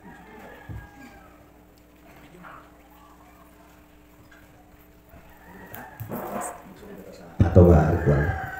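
A man speaks into a microphone in a large room, praying aloud.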